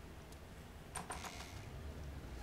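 Soft clicks sound as items are picked in a game menu.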